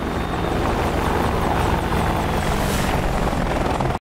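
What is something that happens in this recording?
A helicopter's rotor blades thump loudly as the helicopter flies closer.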